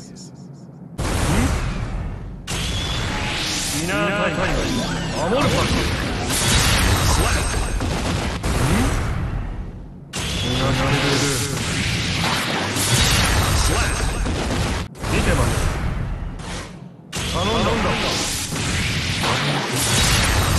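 Heavy blasts and slashing impacts crash again and again.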